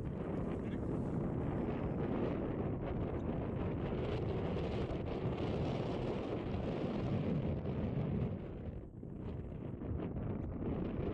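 Wind gusts across open ground, rumbling loudly.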